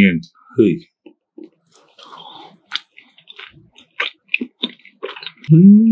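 A young man chews food with wet, crunchy mouth sounds close to a microphone.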